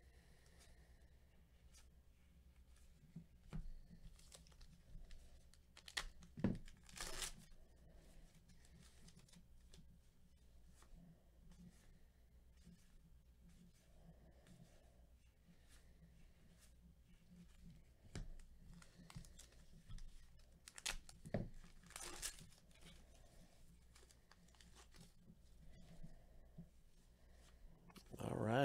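Trading cards rustle and slide against each other as they are flipped.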